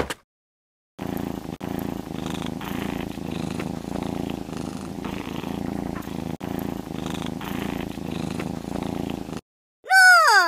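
A cat purrs steadily.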